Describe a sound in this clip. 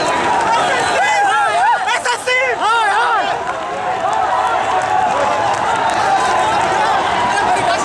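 A crowd of young men shouts loudly outdoors.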